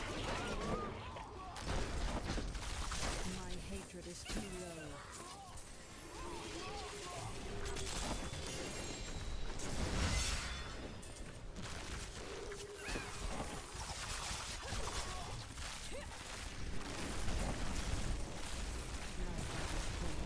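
Game combat effects crash and blast with spell sounds throughout.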